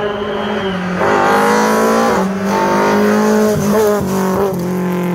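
A rally car engine revs hard and roars closer, shifting gears.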